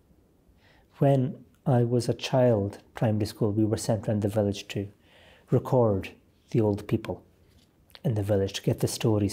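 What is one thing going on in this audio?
A man reads aloud calmly, close to a microphone.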